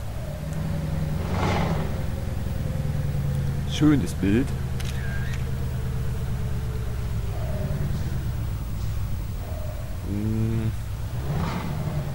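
A truck's tyres hiss on a wet road.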